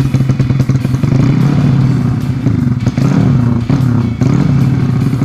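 A single-cylinder four-stroke moped engine revs up through an open exhaust.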